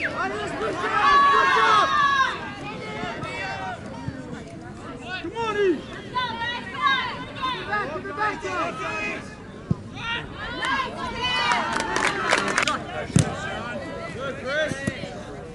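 A soccer ball is kicked with a thud.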